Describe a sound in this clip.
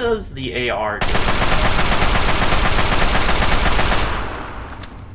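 A gun fires in rapid bursts, echoing in a tunnel.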